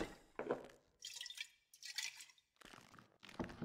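Liquid pours from a bottle into a glass.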